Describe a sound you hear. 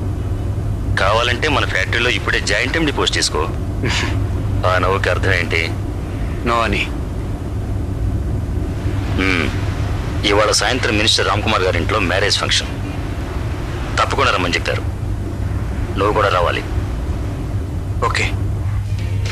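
Two men talk calmly inside a car.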